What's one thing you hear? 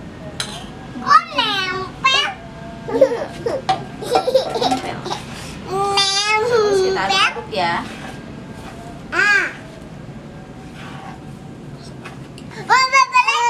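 A young girl talks and laughs brightly.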